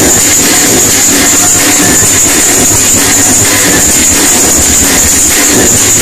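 Loud electronic dance music pounds with a steady, thumping beat over a big sound system.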